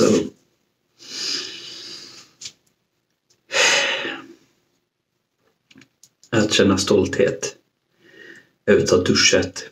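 A man talks calmly and close up into a microphone, with pauses.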